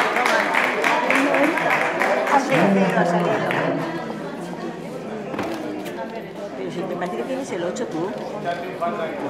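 A crowd of people chatter and murmur in a large echoing hall.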